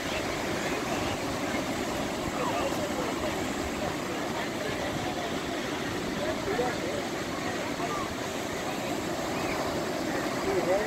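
Waves break and wash steadily onto the shore.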